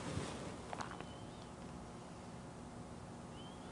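A brush dabs softly on canvas.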